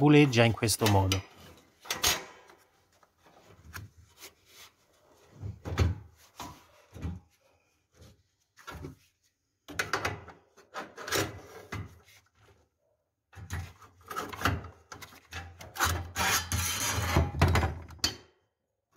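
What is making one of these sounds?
Metal parts clank and scrape as a gloved hand handles them.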